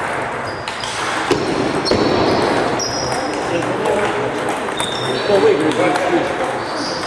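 A table tennis ball clicks back and forth on paddles and a table.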